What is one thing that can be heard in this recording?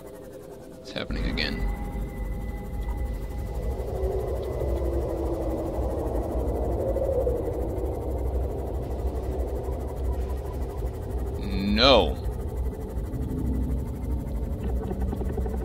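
A small submarine's engine hums low and steady underwater.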